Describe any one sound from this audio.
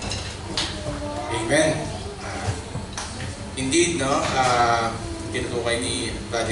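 A young man speaks through a microphone.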